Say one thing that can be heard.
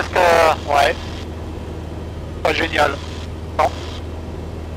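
A man speaks in short bursts over a headset intercom.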